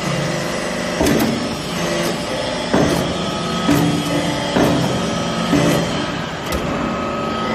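A press ram clanks and thumps against metal.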